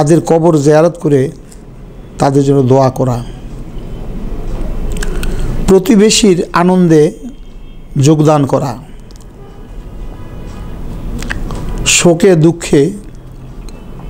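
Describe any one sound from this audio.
An elderly man reads out slowly in short phrases, close to a microphone.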